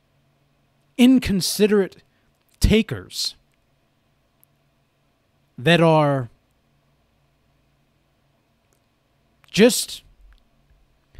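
A man speaks in short bursts with pauses, close to a microphone.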